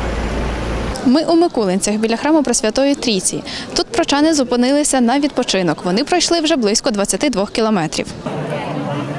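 A young woman speaks clearly into a microphone, close by.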